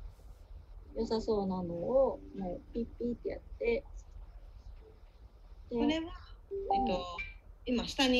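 A young woman talks calmly over an online call.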